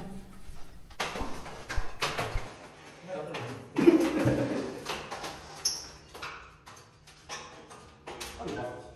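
A wooden frame knocks and rattles as men handle it.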